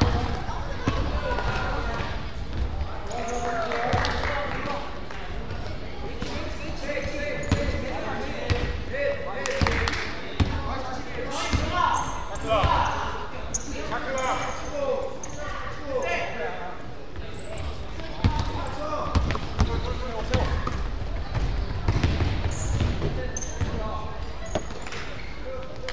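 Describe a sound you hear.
Young players shout and call to each other.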